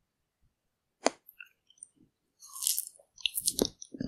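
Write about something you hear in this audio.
A woman bites into ice cream with a crisp crunch.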